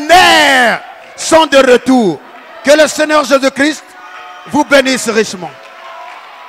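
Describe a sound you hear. A man shouts with fervour through a microphone.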